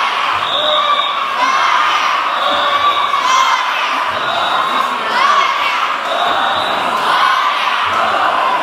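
A crowd of young men and women chant together in a steady rhythm outdoors.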